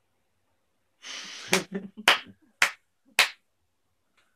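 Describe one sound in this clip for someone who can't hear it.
Young people laugh together close by.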